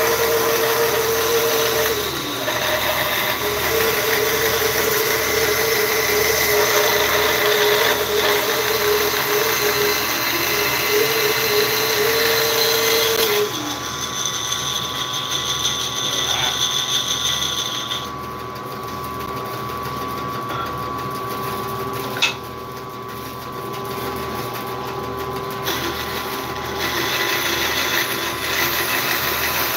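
A band saw runs with a steady hum.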